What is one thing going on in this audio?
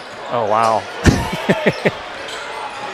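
A basketball thumps as it is dribbled on a wooden floor.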